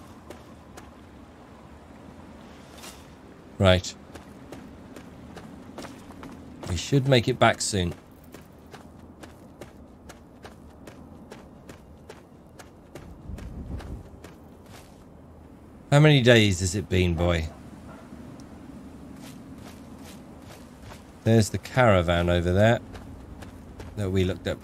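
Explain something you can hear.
Footsteps crunch steadily over dry ground.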